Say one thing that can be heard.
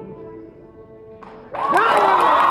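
A string orchestra plays a sustained chord.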